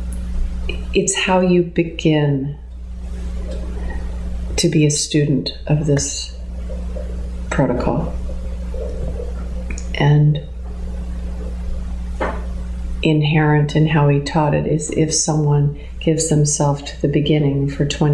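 A middle-aged woman speaks calmly and thoughtfully, close by, with pauses between phrases.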